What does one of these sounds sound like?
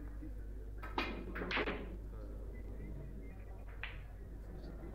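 Snooker balls clack together on a table.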